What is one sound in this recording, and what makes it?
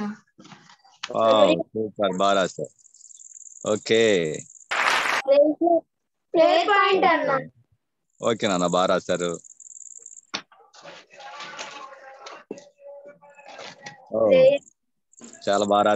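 A young boy reads aloud over an online call.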